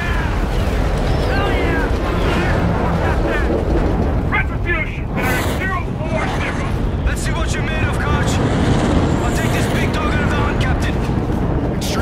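A spacecraft engine roars overhead with a low rumble.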